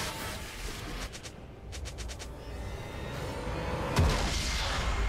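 Fantasy game spell effects crackle and thump in a battle.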